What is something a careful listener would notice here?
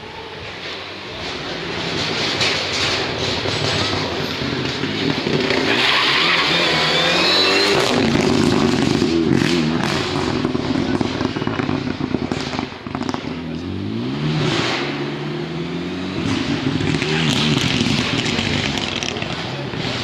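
A rally car engine roars closer, revs hard as it speeds past, then fades away.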